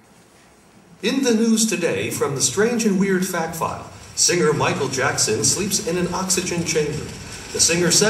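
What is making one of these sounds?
A woman speaks with animation through a loudspeaker in a large hall.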